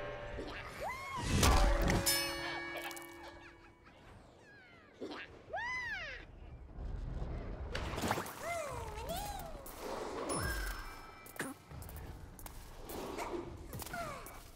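Bright chiming sound effects rise and fall in pitch.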